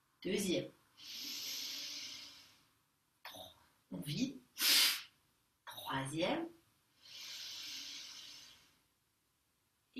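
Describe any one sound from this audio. A young woman breathes out slowly and audibly.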